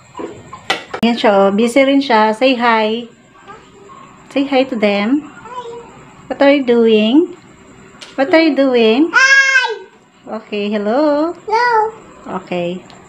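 A young child talks loudly and animatedly close by.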